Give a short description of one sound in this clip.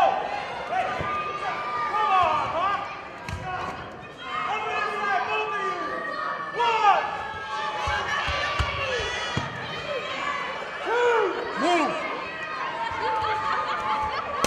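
A crowd of adults and children shouts and cheers in an echoing hall.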